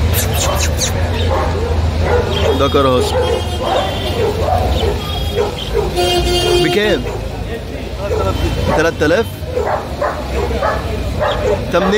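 A dog pants loudly.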